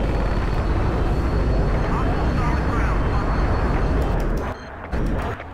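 A jet engine roars loudly and steadily.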